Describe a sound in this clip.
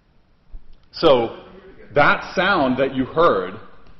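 A man lectures through a microphone.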